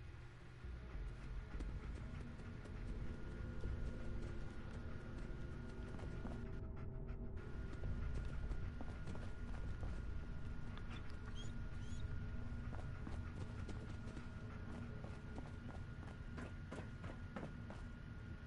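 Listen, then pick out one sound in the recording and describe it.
Footsteps tap steadily on a metal floor.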